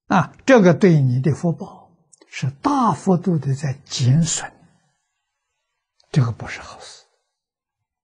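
An elderly man speaks calmly and closely into a microphone, in short phrases with pauses.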